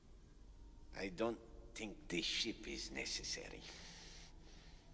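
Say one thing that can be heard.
An older man speaks in a hoarse, menacing voice.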